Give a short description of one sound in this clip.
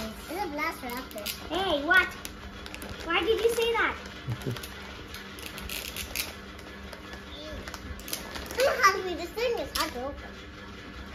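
Wrapping paper crinkles and rustles as a young child tears it open.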